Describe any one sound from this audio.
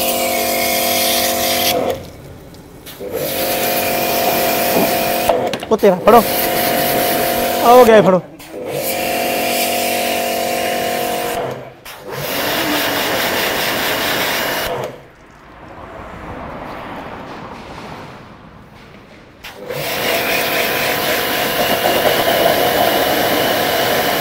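A pressure washer motor hums steadily.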